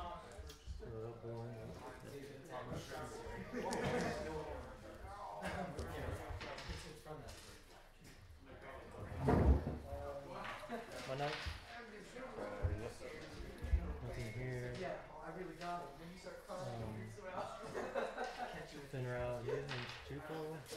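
Plastic game pieces click and slide on a mat.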